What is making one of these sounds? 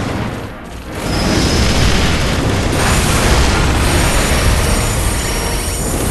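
Explosions boom and rumble in a game.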